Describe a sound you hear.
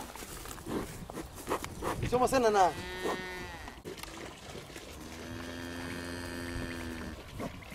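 A young bull tears and chews grass.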